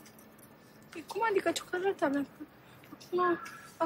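A young woman speaks in an upset, tearful voice, close by.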